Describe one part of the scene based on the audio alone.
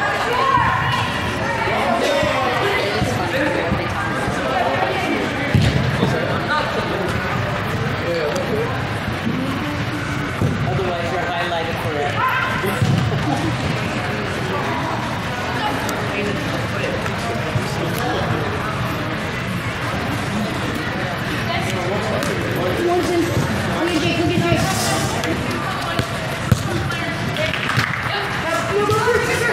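Young players shout and call out across a large echoing hall.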